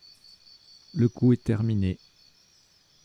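A loud buzzer sounds as the countdown runs out.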